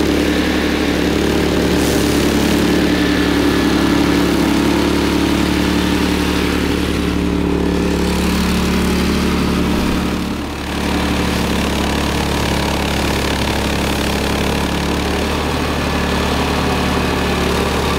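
A flail mower whirs as it chops through dry grass.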